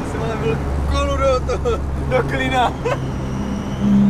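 A man laughs excitedly nearby.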